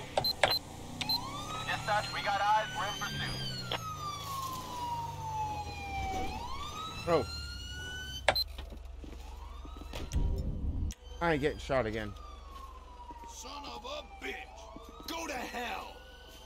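A police siren wails in rising and falling sweeps.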